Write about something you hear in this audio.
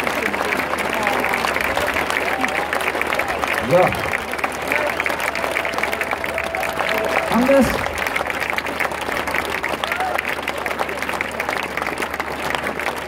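A crowd cheers and shouts in a large open space.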